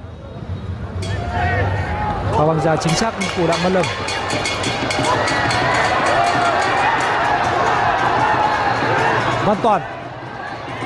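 A crowd in a stadium cheers and roars.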